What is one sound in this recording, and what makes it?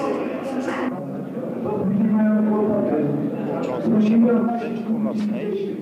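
Men talk together in a crowd.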